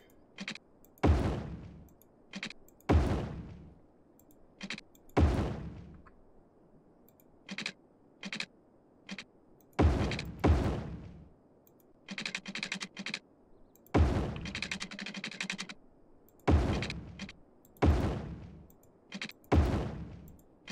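Quick soft clicks tick in short bursts.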